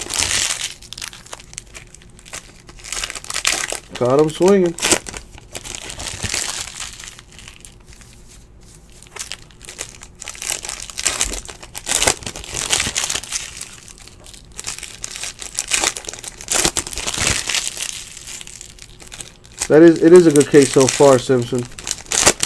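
Foil wrappers crinkle and rustle as card packs are torn open.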